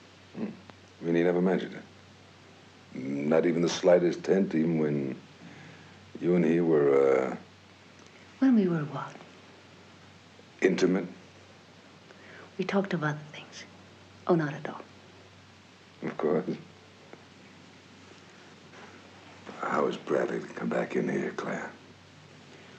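A man speaks calmly and softly, close by.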